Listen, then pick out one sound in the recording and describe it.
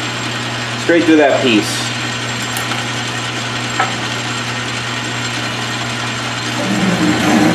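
A drill bit cuts into spinning metal.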